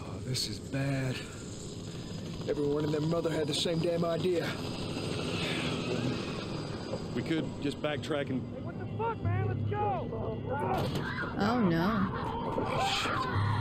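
Men speak tensely.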